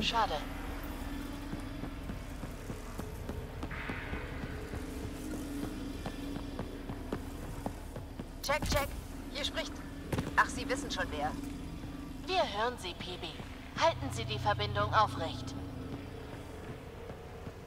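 Footsteps tread on a hard metal floor.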